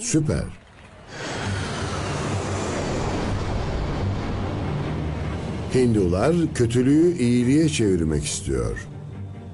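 A jet engine roars steadily in flight.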